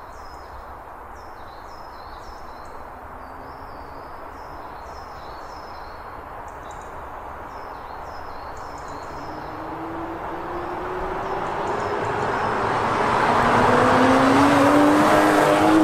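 A car engine approaches from a distance, growing steadily louder as it nears and passes close by.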